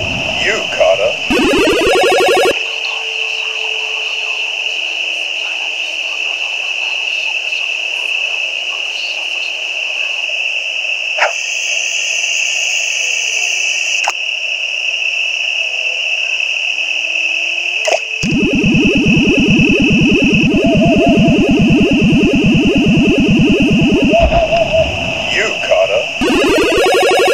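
Chiptune video game music plays steadily.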